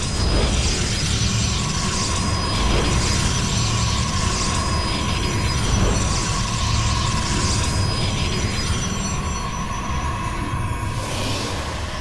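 Game units warp in with a steady electronic hum.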